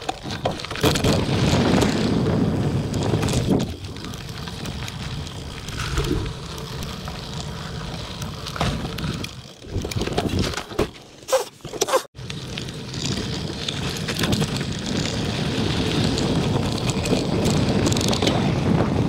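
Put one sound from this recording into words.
Knobby mountain bike tyres roll and crunch over a dirt trail.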